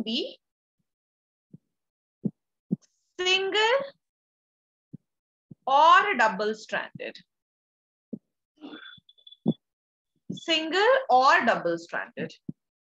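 A young woman speaks calmly through a microphone, explaining slowly with pauses.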